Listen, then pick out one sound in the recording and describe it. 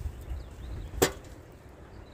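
A log knocks sharply against a log splitter.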